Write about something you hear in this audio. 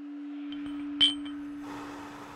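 A glass jar clinks as it is set down on a metal stand.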